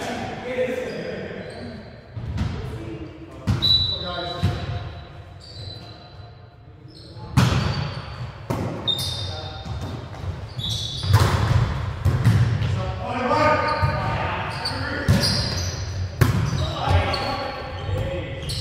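Young men call out and shout during play in a large echoing gym.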